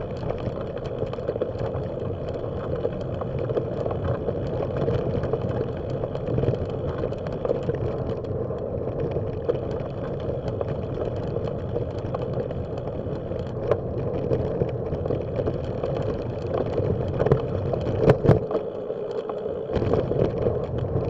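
Tyres crunch steadily over a gravel path.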